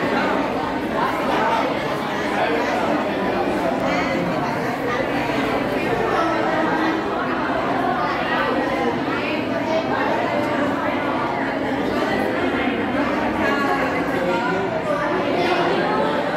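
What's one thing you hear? A crowd of men and women chatter all around in an echoing room.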